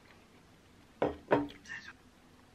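A cup is set down on a table with a thud.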